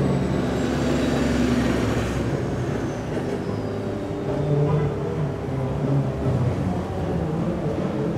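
City traffic hums steadily nearby outdoors.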